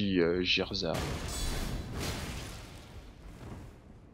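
A blast bursts with a crackling roar and slowly dies away.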